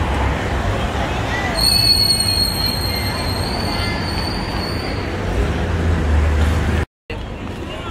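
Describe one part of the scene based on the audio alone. Cars pass by on a wet road.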